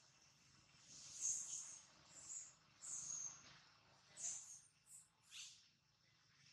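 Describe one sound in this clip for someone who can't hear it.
A baby monkey squeals with sharp, high cries.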